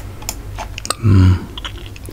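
A young man hums briefly with closed lips.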